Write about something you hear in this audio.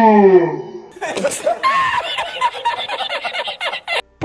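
An older man laughs loudly and heartily.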